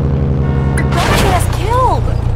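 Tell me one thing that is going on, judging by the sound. A car crashes into another car with a loud bang.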